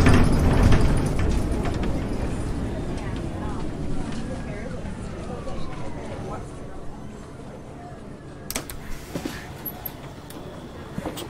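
A bus slows to a stop and its engine noise dies down to a low idle.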